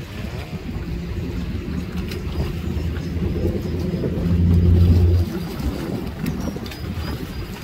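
A jet ski engine hums across the water.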